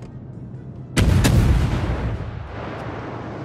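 Heavy naval guns fire in loud booming blasts that echo away.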